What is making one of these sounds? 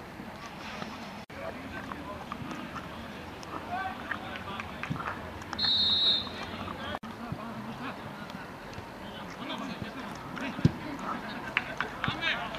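A crowd of spectators chatters and calls out from a distance, outdoors.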